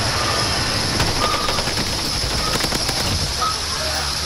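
A rifle fires a rapid burst of gunshots.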